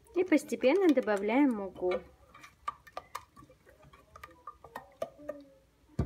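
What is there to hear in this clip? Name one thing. A wire whisk clinks and scrapes against a metal pot.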